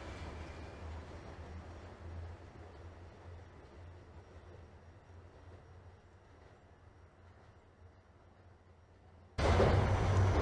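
A subway train pulls away from a platform and fades into a tunnel.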